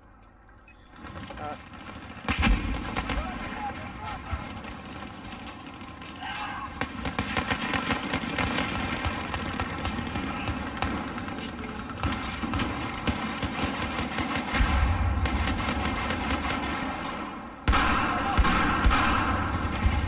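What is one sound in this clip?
Gunfire and explosions of a battle rumble in the distance.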